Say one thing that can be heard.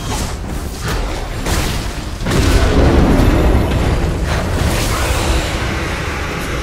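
Game spell effects whoosh and crash during a fight.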